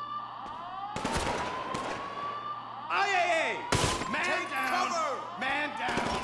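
A handgun fires shots in a large indoor hall.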